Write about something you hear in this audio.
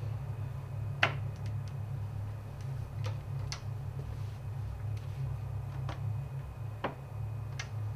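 A door handle clicks as it is pressed down.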